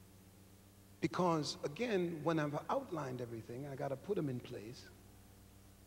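A middle-aged man preaches forcefully into a microphone in a large echoing hall.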